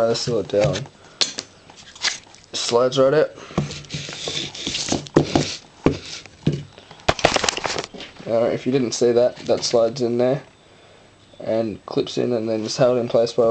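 Small wooden pieces clack and knock on a hard surface.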